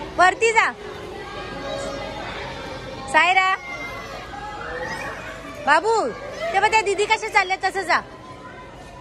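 A toddler squeals and shrieks playfully close by.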